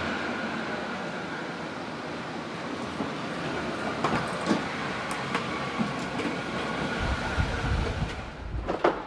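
A car engine hums in an echoing space.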